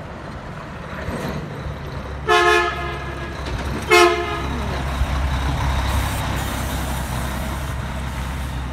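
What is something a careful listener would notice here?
A second heavy truck approaches with a growing engine rumble and drives past close by.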